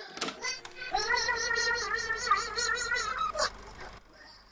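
A man screams in a cartoonish voice.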